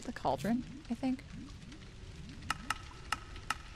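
Soft interface clicks tick several times.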